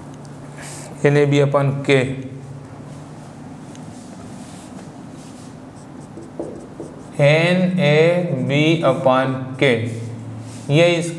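A man explains calmly into a clip-on microphone, close by.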